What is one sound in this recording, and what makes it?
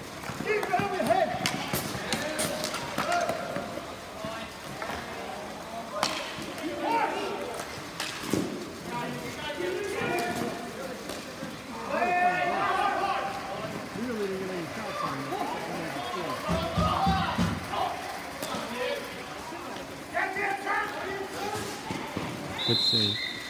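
Plastic wheels of inline skates roll and scrape on a hard court.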